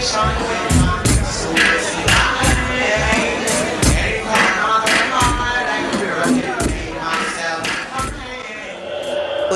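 Heavy drum-and-bass music thumps.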